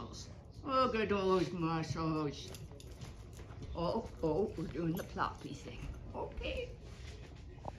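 A young woman talks playfully to a dog close by.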